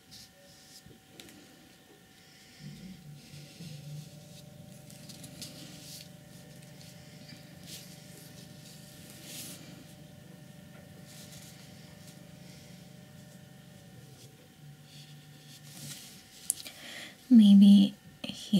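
A brush softly scrapes and dabs across paper.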